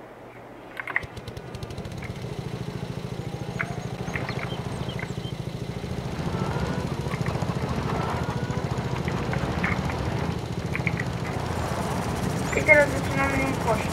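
A lawn mower engine runs with a steady low drone.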